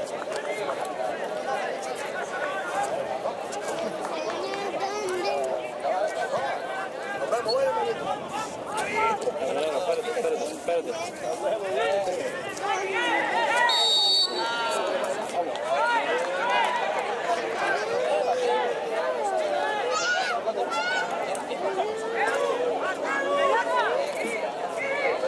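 Several men talk with animation close by, outdoors.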